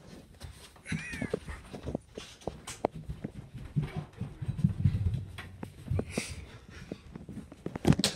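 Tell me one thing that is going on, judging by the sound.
Footsteps thump quickly down wooden stairs indoors.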